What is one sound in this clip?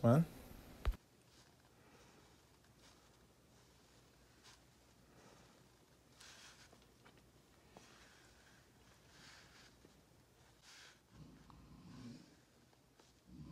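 A pen scratches softly across paper in short strokes.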